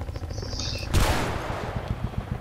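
A helicopter explodes with a booming blast.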